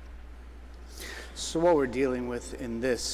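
An elderly man speaks through a microphone in a large echoing hall.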